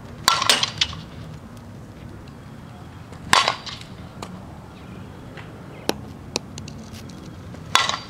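A bat cracks sharply against a ball, several times.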